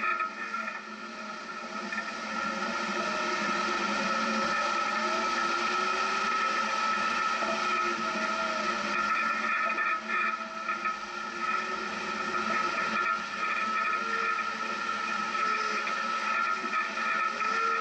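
Tyres crunch over a rough dirt track.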